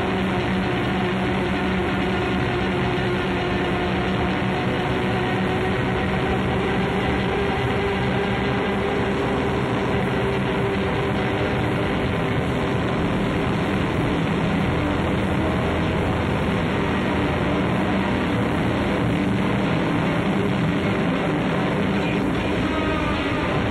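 Drums play along with the band.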